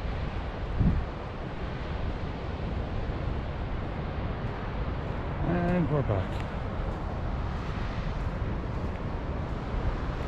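Wind gusts and rumbles steadily outdoors.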